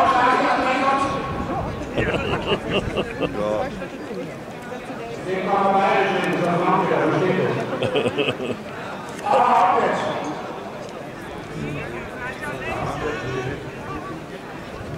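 A crowd of men and women talk and murmur outdoors.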